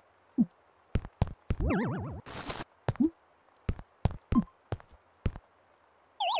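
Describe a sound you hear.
Soft knocks sound as furniture is set down.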